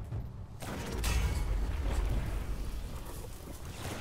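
A loud blast booms and roars.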